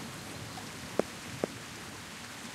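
A golf ball thuds onto grass and bounces.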